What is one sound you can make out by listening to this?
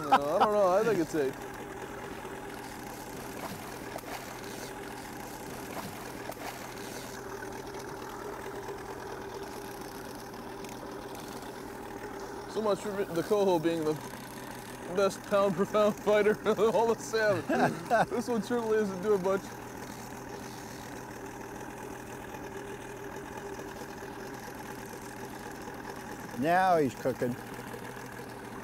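An outboard motor hums steadily nearby.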